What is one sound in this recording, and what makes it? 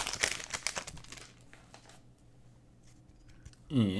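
Trading cards rustle as they are shuffled by hand.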